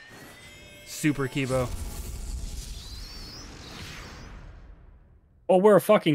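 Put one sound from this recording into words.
A bright whooshing effect swells and fades away.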